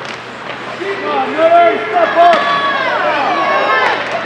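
A crowd of spectators cheers in an echoing ice rink.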